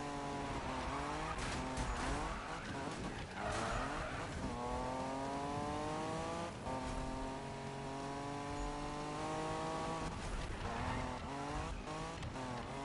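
Tyres screech as a car drifts around a corner.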